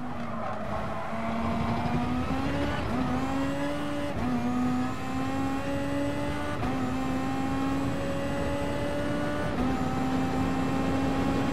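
A racing car engine revs high, climbing in pitch and dropping briefly at each gear change.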